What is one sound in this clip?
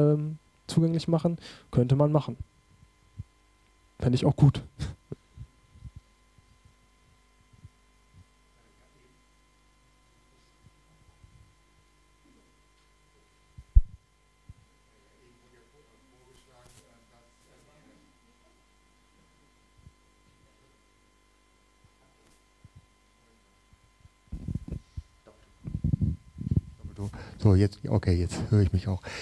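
A young man speaks calmly into a microphone, with long pauses.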